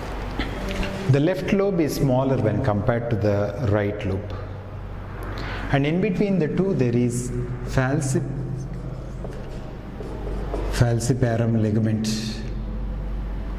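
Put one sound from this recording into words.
A man lectures with animation, close by.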